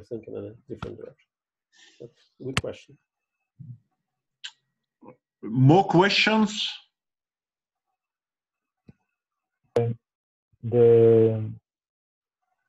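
A man speaks through an online call, pausing often.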